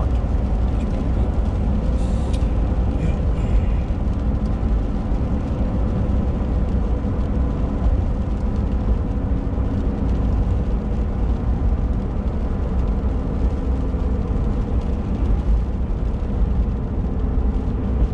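Raindrops patter on a windshield.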